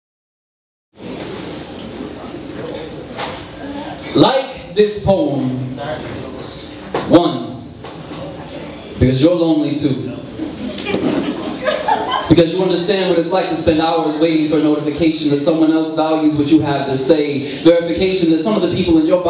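A young man speaks into a microphone, heard through loudspeakers in a large room.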